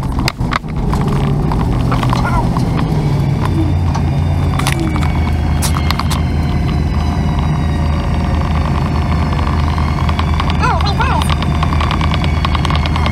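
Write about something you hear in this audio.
A vehicle engine idles with a low steady hum.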